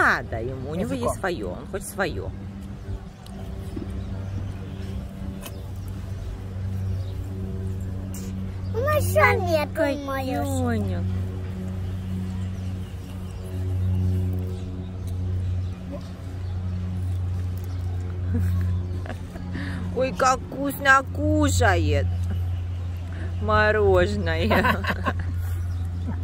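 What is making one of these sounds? A young child talks softly close by.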